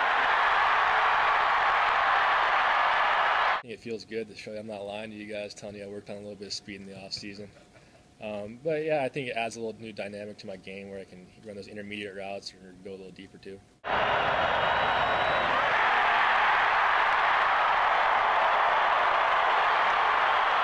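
A stadium crowd roars loudly.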